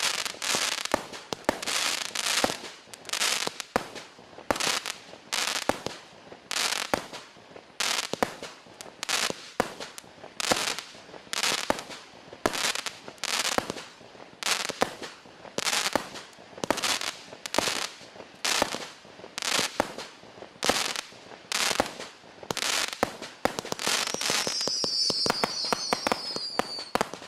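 Fireworks sparkles crackle and fizz after the bursts.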